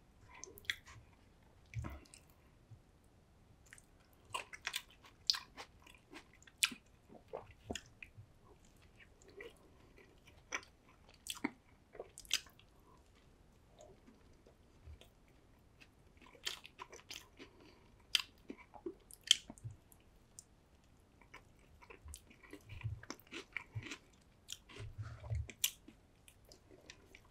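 A man chews food with wet, crunchy sounds close to a microphone.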